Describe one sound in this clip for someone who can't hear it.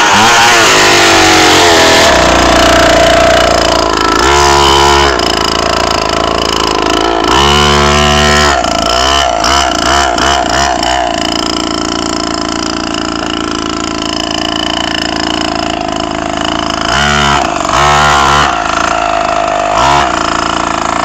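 A 49cc mini dirt bike engine buzzes and revs as it rides over grass.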